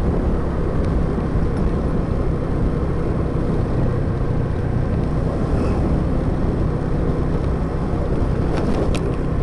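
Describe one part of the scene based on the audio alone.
A motorbike engine hums steadily while riding along.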